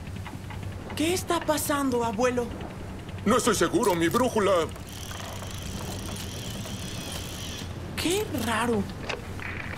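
An elderly man speaks with animation.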